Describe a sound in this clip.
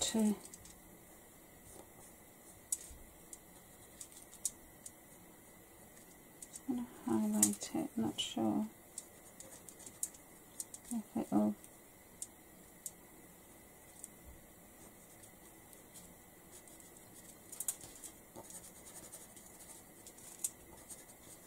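A tool scratches and rubs on a plastic sheet.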